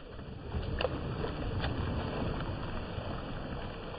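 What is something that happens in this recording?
Water splashes as a fish is released into the shallows.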